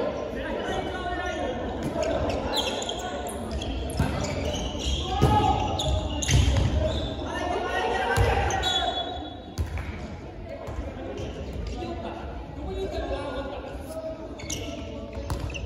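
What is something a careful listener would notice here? A ball bounces and thuds on a wooden floor.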